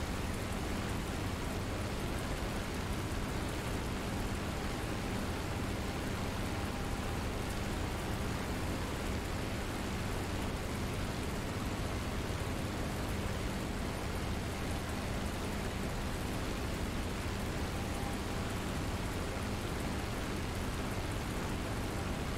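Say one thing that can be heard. A propeller plane's engine drones steadily with a loud, rumbling roar.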